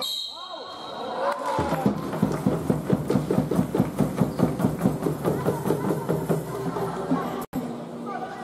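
A crowd of spectators cheers and chants rhythmically in an echoing hall.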